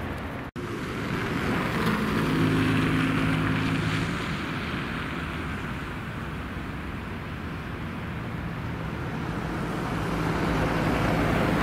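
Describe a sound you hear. A train rumbles steadily past in the distance.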